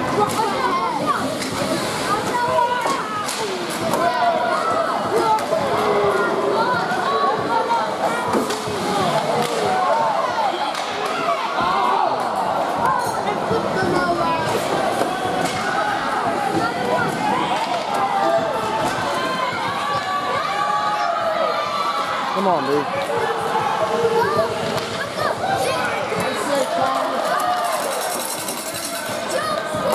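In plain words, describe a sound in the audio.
Skates scrape across the ice in a large echoing rink.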